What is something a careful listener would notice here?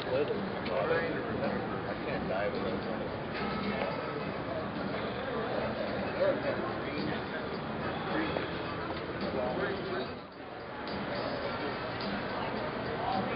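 A crowd of men and women chatters nearby outdoors.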